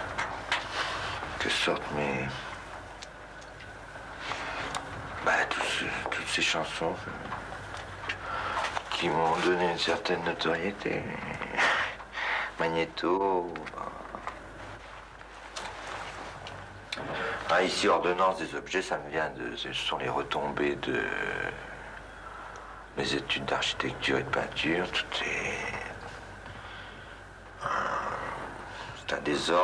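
A man speaks calmly into a microphone at close range.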